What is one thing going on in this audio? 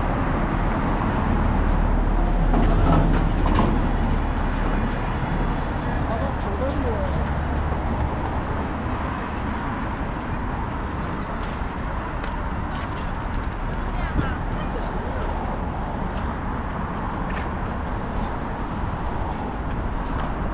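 Footsteps tap on pavement close by.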